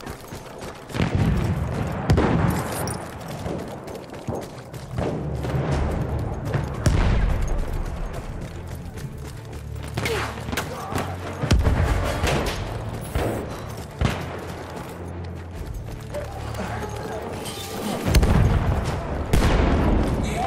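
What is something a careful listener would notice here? Explosions boom loudly nearby and in the distance.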